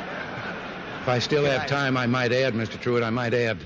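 Another elderly man speaks with animation into a microphone.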